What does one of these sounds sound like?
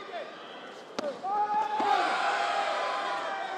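A young man lets out a sharp fighting shout.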